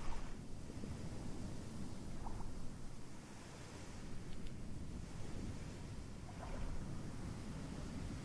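Surf rumbles steadily nearby.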